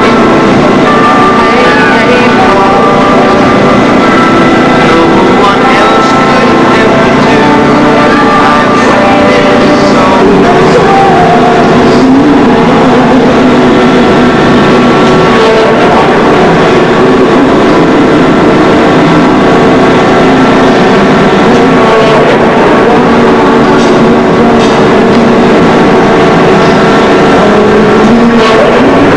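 Music plays loudly through an outdoor loudspeaker.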